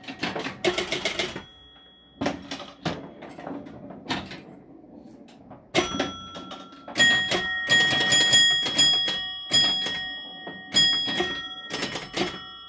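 A pinball machine's bumpers and flippers clack and knock sharply.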